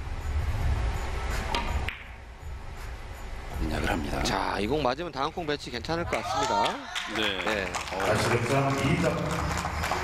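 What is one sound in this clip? Billiard balls click sharply against each other.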